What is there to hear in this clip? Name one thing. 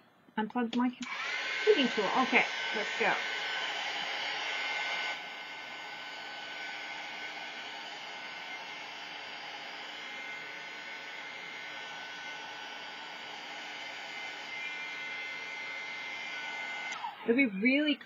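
A hot air tool blows with a steady whirring hiss, then cuts off.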